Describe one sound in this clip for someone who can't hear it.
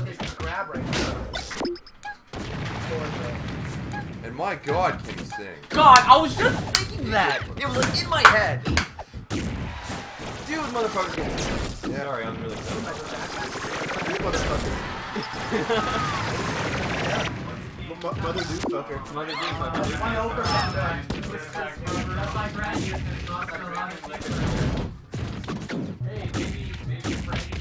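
Video game fighting sound effects hit and clash rapidly.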